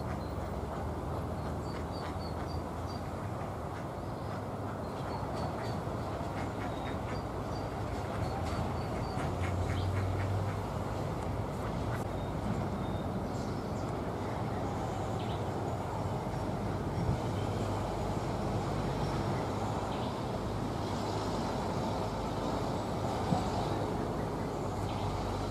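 Ducklings peep softly nearby.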